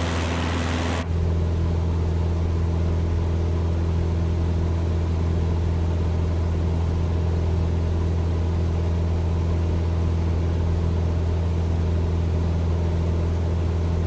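A propeller plane's engine hums steadily and muffled, heard from inside the cabin.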